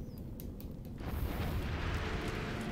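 Flames burst up and roar steadily.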